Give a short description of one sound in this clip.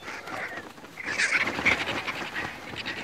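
Vultures screech and squabble nearby.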